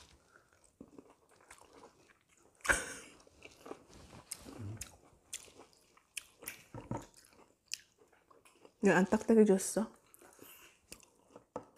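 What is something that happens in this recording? A young woman chews fruit.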